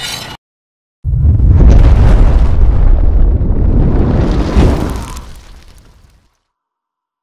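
A fireball bursts with a deep roar.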